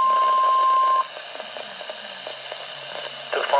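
A computerized male voice speaks through a small radio loudspeaker.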